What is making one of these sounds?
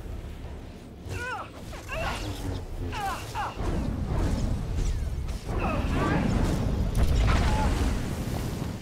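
Blaster bolts zap and whine in quick bursts.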